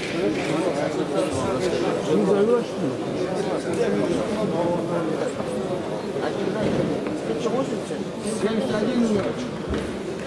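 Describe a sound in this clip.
Many men chatter at once in a large echoing hall.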